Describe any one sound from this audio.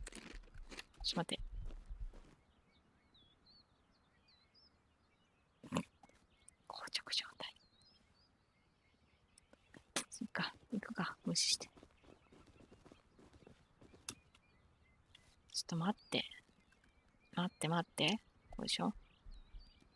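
Footsteps tread over grass and dirt.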